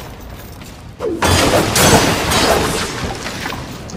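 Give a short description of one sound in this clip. Plastic bins crash and break apart.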